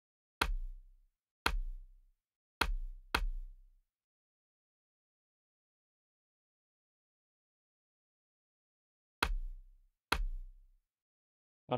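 A short, sharp click sounds at each menu change.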